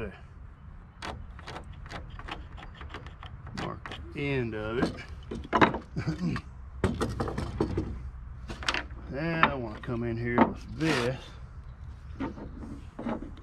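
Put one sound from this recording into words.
Wooden parts knock and clatter as they are handled.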